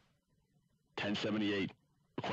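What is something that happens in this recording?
A young man speaks close to a microphone.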